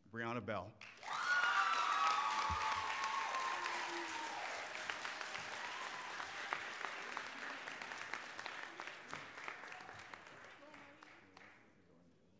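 A crowd claps and cheers loudly, then slowly quiets.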